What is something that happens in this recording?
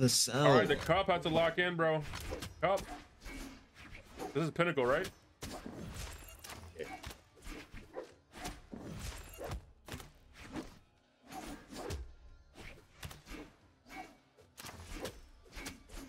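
Sharp slashes and impacts crack in quick succession in a fighting game.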